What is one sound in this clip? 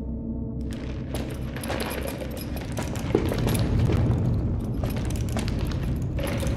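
Small quick footsteps patter across a hard floor.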